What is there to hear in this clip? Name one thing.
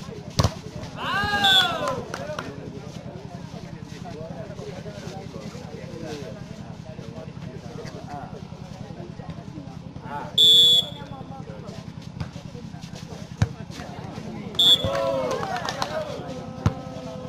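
Young men shout loudly from a distance outdoors.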